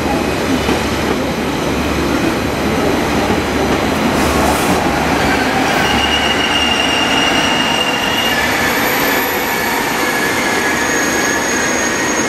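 A high-speed train rolls past on the tracks with a steady rumble and whine.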